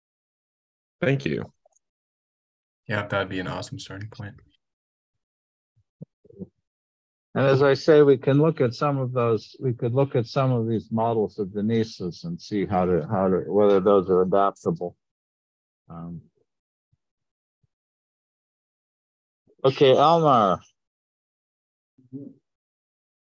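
A man speaks calmly in bursts over an online call.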